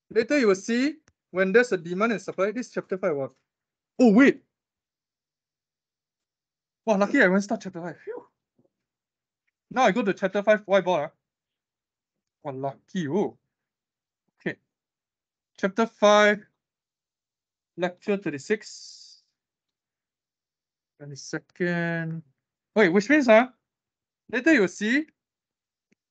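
A young man speaks calmly in short phrases over an online call.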